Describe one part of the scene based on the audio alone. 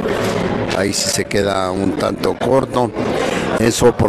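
Billiard balls click together when struck.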